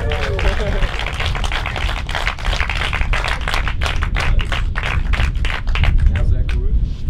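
People clap and cheer.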